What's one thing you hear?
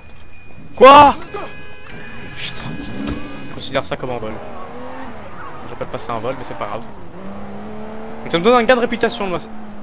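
A car engine revs as the car drives off.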